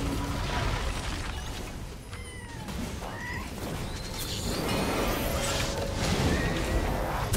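Magical spell effects whoosh and crackle during a fight.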